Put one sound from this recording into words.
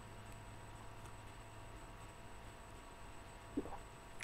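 A young man drinks from a bottle with gulping sounds.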